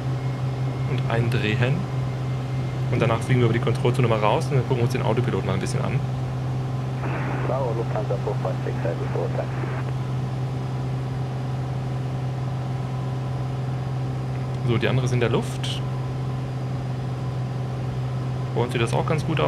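A man talks calmly into a microphone.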